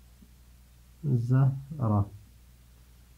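A man speaks a few words calmly, close by.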